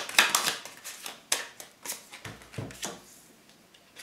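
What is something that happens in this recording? A deck of cards riffles and flicks in a hand.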